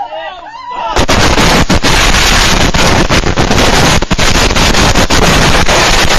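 A huge blast of fireworks roars and crackles continuously.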